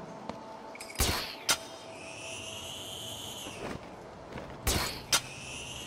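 A launcher fires a line with a sharp bang.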